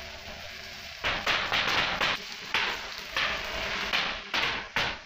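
An electric arc welder crackles and sizzles in bursts.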